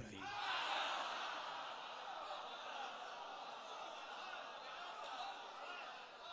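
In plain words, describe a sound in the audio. A man chants loudly and passionately through a microphone and loudspeakers.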